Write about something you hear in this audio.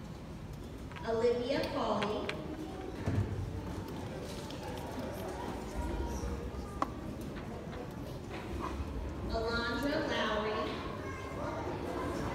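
A woman speaks into a microphone over a loudspeaker in a large echoing hall.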